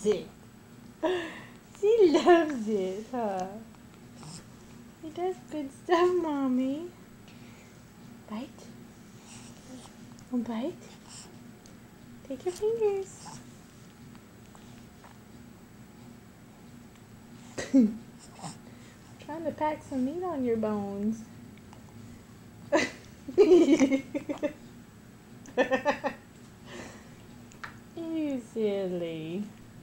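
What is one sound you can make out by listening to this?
A baby babbles and fusses close by.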